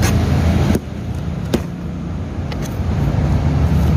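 Tape rips off a cardboard box.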